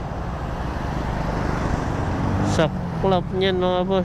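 A motorcycle engine revs as it passes close by.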